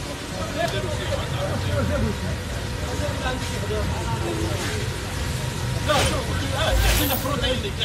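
A fire hose sprays water with a steady rushing hiss.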